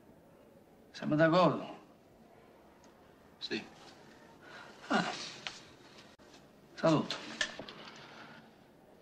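A young man answers calmly, close by.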